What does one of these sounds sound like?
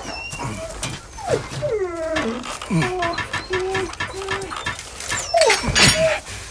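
A wolf whimpers and whines.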